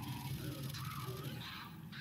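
An energy weapon fires with sharp electric zaps.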